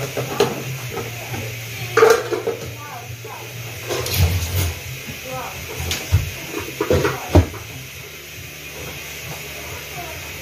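Dishes and plastic containers clatter and knock.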